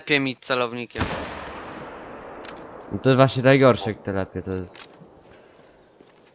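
A rifle fires once, and the shot rolls away in a long echo.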